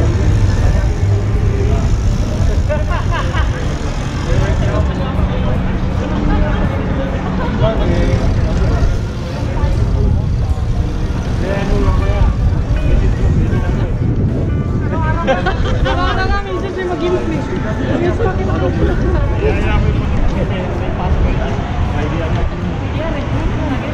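Several adults talk and call out nearby.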